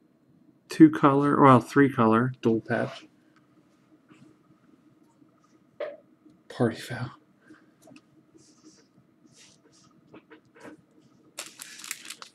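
A stiff card rustles softly between fingers.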